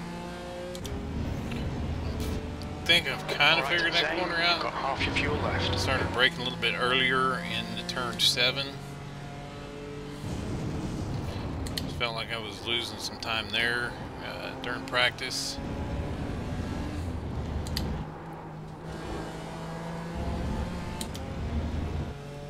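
A race car engine roars and changes pitch through the gears.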